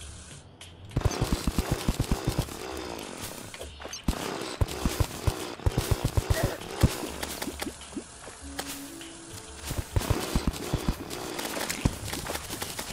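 A video game drill whirs in rapid pulses as it digs.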